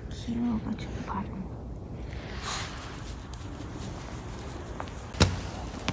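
A small dog's paws crunch in fresh snow.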